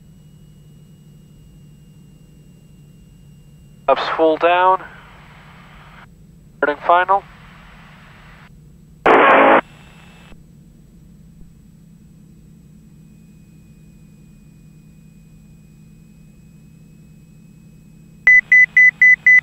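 A propeller engine drones steadily.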